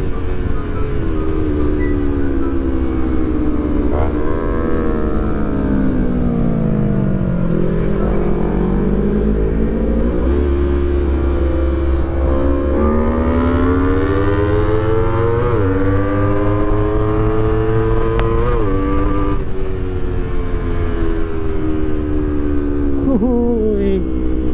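A motorcycle engine roars close by, revving up and down as gears change.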